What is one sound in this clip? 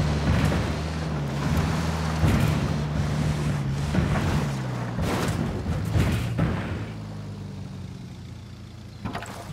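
An engine hums and strains as a vehicle drives over rough ground.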